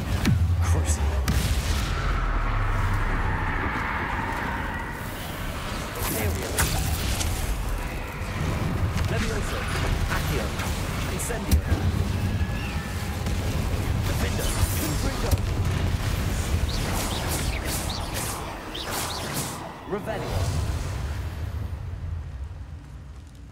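Fiery blasts boom and rumble low.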